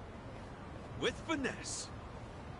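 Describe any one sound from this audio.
A man speaks briefly and firmly.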